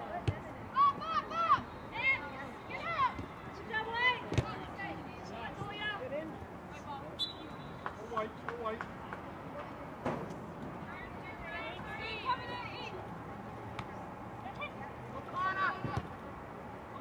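A soccer ball thuds off a foot.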